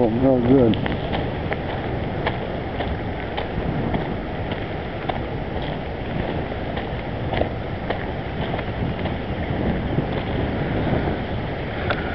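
A river rushes steadily over rapids nearby.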